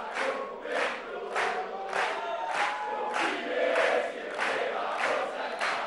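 A large crowd applauds and cheers in rhythmic bursts in a large hall.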